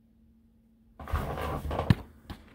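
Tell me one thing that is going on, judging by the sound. A hand rubs and fumbles against the microphone.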